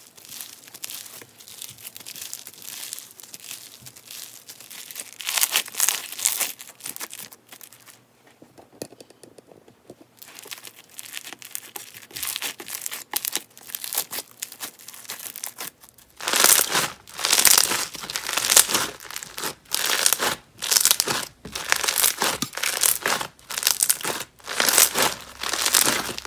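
Hands squish and crackle a foamy slime close up, louder in rhythmic bursts later on.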